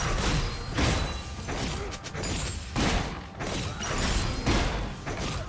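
Magic spells burst and crackle in quick bursts during a fight.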